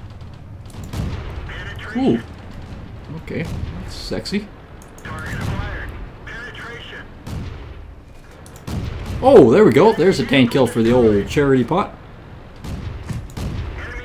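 A tank cannon fires with heavy booms.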